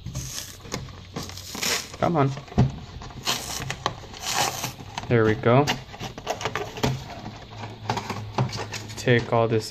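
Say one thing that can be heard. Paper tears and rustles.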